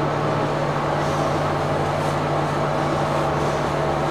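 A comb rasps through thick hair.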